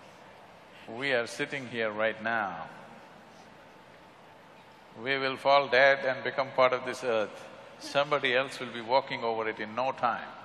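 An elderly man speaks calmly into a microphone.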